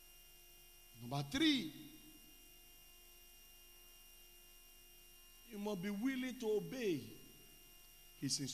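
A man preaches with animation into a microphone, in short loud bursts.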